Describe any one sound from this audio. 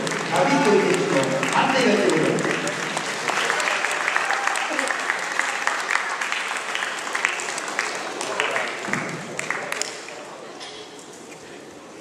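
A large crowd applauds and cheers in an echoing hall.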